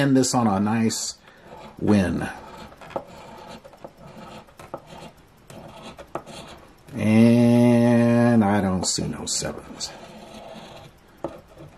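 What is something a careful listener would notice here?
A coin scratches the coating off a scratch-off ticket.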